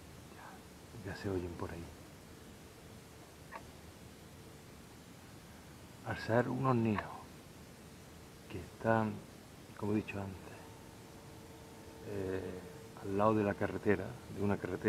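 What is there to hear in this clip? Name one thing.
A middle-aged man talks quietly and close by, in short bursts with pauses.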